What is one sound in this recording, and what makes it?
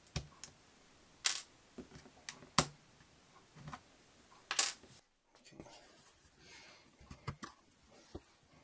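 Hands handle a laptop, with its plastic case clicking and tapping.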